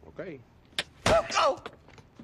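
A punch lands with a dull thud.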